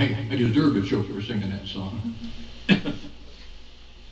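An elderly man speaks calmly and close into a microphone.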